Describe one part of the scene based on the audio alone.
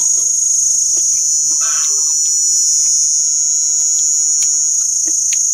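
A young woman chews food noisily up close.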